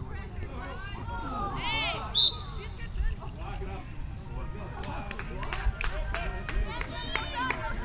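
Men and women spectators nearby chat and call out outdoors.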